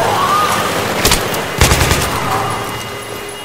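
Gunshots fire in a short burst and echo in a large, hollow space.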